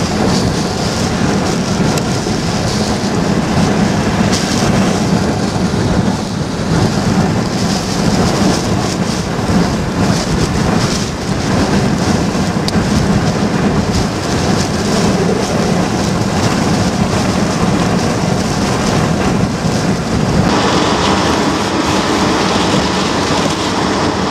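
Hurricane-force wind roars around a car.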